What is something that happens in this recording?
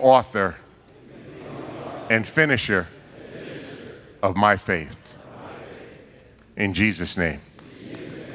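An older man speaks with animation into a microphone, in short bursts through loudspeakers in a large echoing hall.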